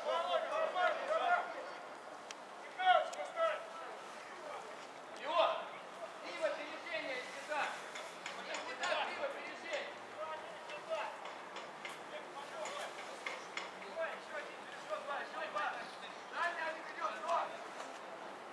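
Men shout to each other across an open field, some way off.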